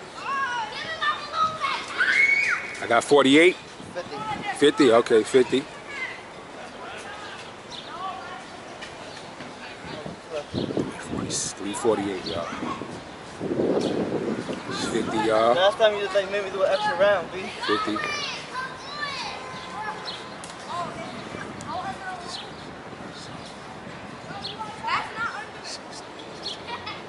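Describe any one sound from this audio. A young man talks calmly nearby, outdoors.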